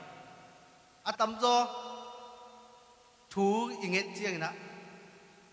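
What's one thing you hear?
A young man speaks with animation into a microphone in an echoing hall.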